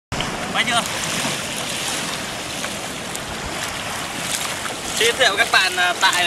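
Water splashes as a man wades through shallow water.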